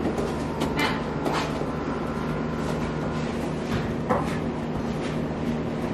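A horse's hooves clop on a hard floor.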